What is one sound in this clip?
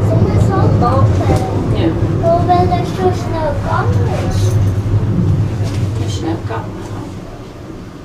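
An escalator rumbles and hums loudly.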